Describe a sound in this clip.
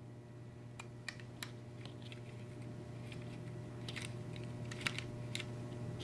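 A small screwdriver clicks and scrapes against a plastic part.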